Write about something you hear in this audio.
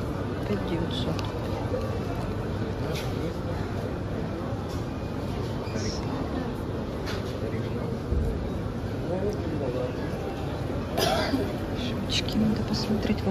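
A crowd of shoppers murmurs in the background throughout.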